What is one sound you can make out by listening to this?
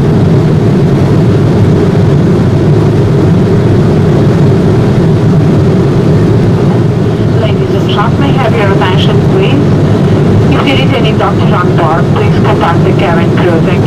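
A jet airliner's engines drone steadily inside the cabin.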